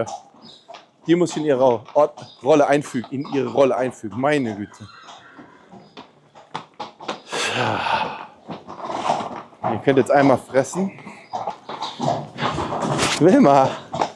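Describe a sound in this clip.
Hooves clop on a hard floor.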